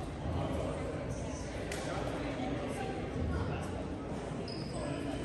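A crowd of people chatters in a large echoing gym.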